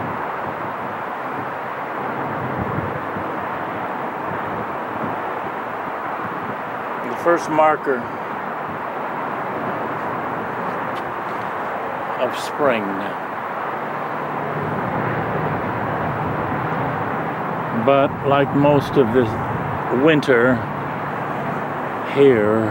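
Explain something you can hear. Wind blows steadily through tree leaves outdoors.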